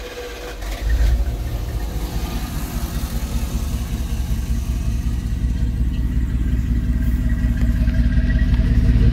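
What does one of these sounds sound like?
A van engine idles with a steady low rumble.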